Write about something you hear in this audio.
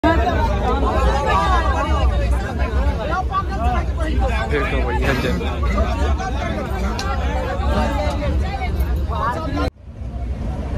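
Several men chatter close by.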